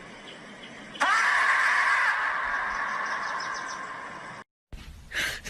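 A marmot lets out a long, loud, piercing scream.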